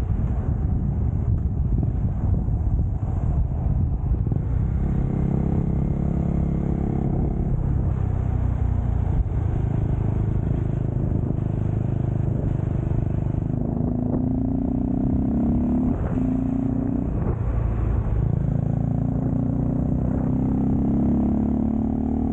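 A motorcycle engine hums steadily and rises and falls in pitch as the rider changes speed.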